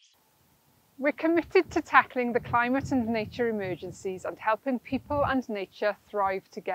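A middle-aged woman speaks calmly and clearly, close to a microphone.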